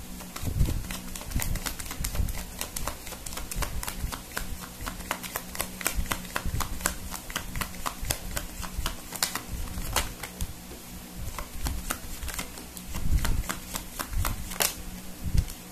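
Playing cards riffle and flick as they are shuffled by hand.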